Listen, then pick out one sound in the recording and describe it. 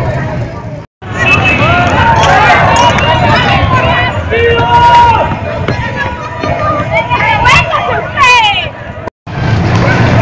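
A crowd of young men shouts and yells outdoors.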